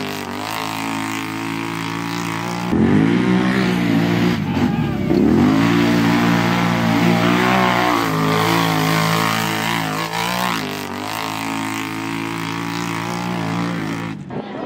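Mud splashes and sprays under a quad bike.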